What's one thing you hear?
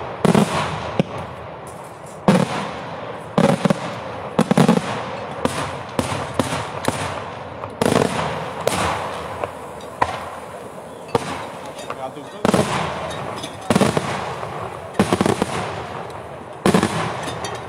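Firecrackers crackle and pop in the sky.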